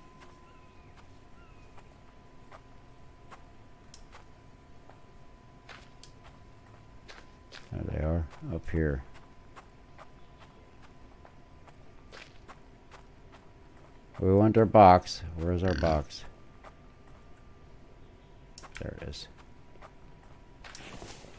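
Footsteps crunch softly over dry ground and leaves.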